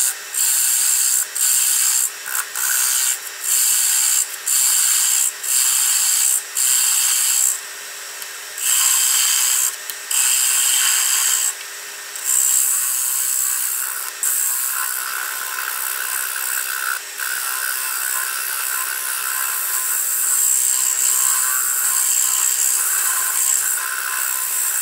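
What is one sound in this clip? A lathe spins steadily with a whirring hum.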